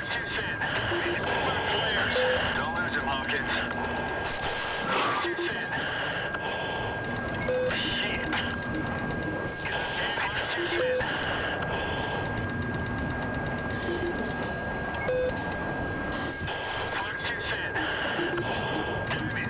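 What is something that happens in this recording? A targeting tone beeps at regular intervals.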